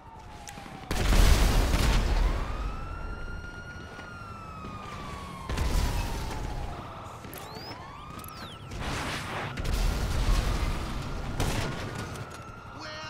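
Loud explosions boom and rumble several times.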